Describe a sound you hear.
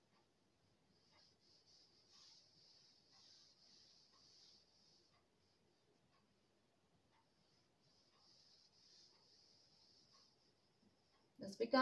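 A duster wipes softly across a chalkboard.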